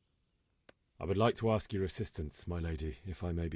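A young man speaks calmly and politely.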